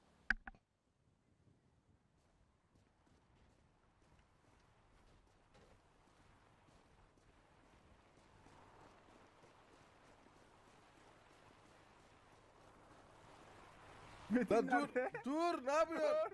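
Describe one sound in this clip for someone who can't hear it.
Footsteps scrape on rocky ground.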